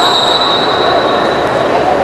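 A hockey stick taps a ball on the turf.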